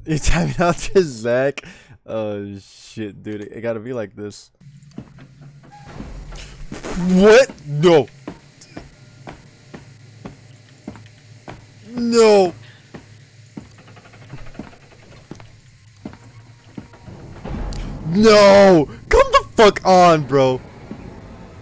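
A young man talks with animation and shouts into a close microphone.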